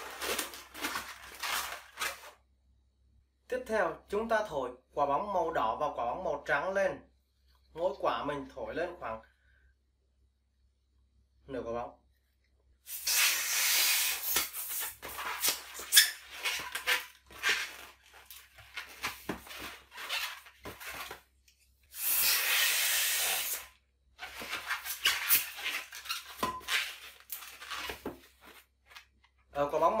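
Rubber balloons squeak and rub as they are twisted.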